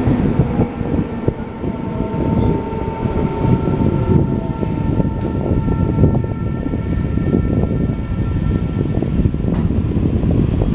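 Train brakes squeal as the train slows into a station.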